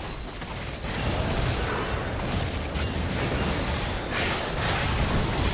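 Magic blasts and hits crackle and boom in a busy game fight.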